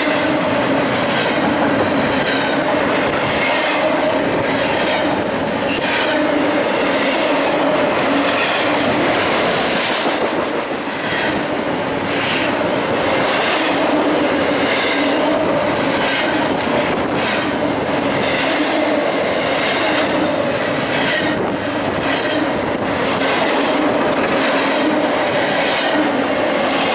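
Steel wheels clack rhythmically over rail joints.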